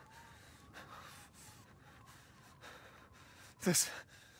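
Hands scrape and crunch on snow.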